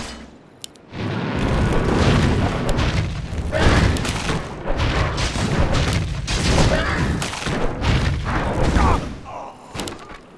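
Magic blasts crackle and burst in a fight.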